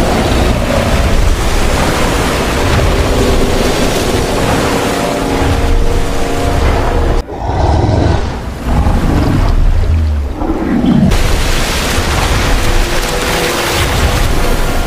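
Water splashes and churns heavily.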